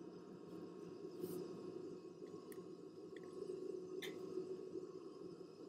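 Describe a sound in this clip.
A jet engine hums steadily nearby.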